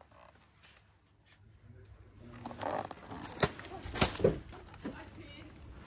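A cardboard box rustles as a hand handles it.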